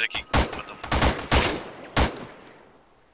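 Gunshots crack loudly and echo.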